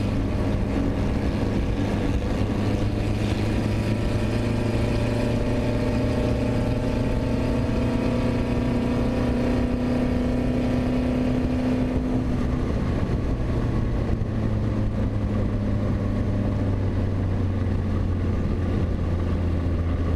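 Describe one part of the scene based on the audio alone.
A race car engine roars loudly close by, its pitch shifting with the gears.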